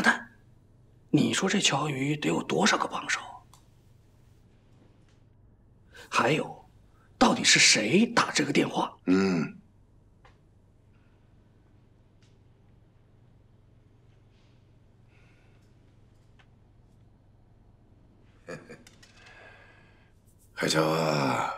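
A middle-aged man speaks in a choked, tearful voice close by.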